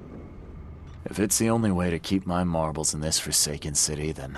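A man speaks calmly and close by, in a deep voice.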